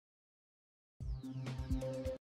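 Electronic menu music starts up.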